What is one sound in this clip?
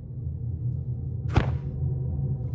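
A blaster fires a loud shot.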